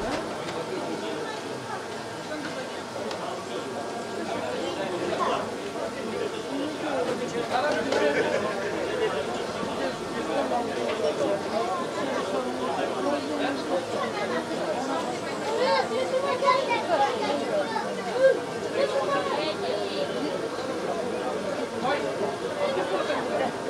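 A young child babbles and squeals, heard through a small loudspeaker.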